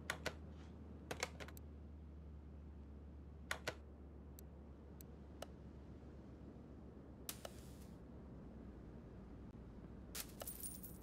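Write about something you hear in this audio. Short, sharp interface clicks sound now and then.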